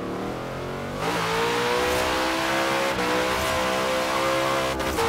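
Tyres screech on tarmac as a car spins its wheels.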